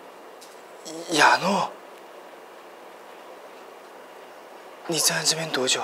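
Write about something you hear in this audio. A man speaks in a low, surprised voice close by.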